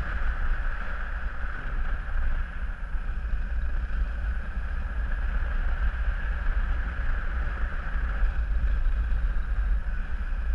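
Wind rushes and buffets loudly past the microphone.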